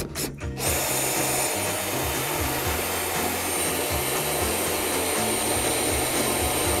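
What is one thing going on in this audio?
A cordless drill whirs steadily at close range.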